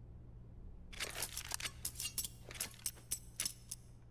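Quick clicks and clatters sound as a knife is swung.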